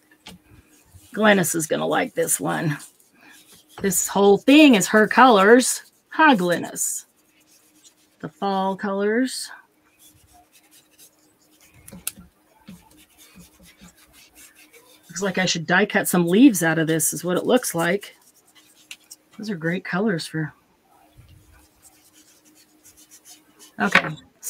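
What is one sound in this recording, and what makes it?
A sponge dabs softly on paper.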